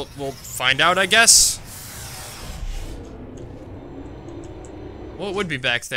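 A young man speaks with animation through a headset microphone, close by.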